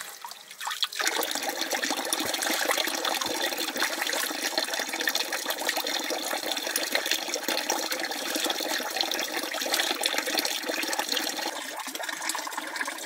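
Hands swish and squelch wet rice in water.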